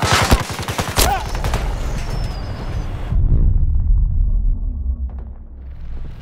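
An explosion booms with a deep, rolling rumble.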